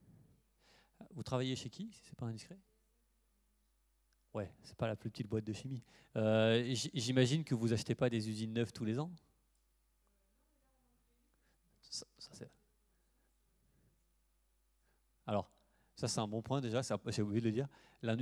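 A man speaks through a microphone in a large hall, explaining calmly with pauses.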